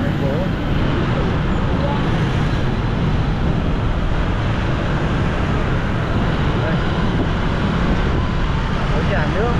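Motorbikes drone along a busy street around.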